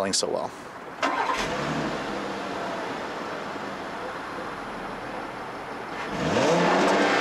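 A car engine idles with a low rumble from the exhaust.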